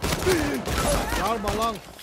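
A gun fires sharp shots in close bursts.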